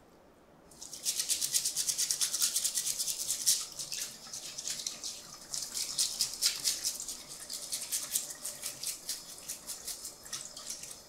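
A stiff brush scrubs rapidly under running water.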